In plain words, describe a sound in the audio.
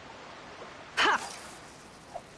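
A fishing line whooshes out with a quick swish.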